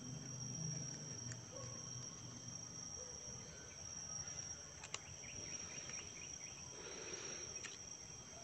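Hands tear and peel a dry leaf sheath off a plant stem.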